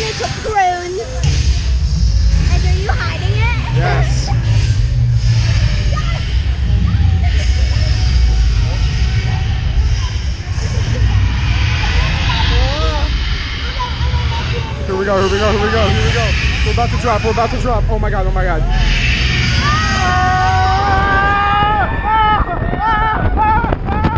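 A crowd of young people shouts and cheers close by.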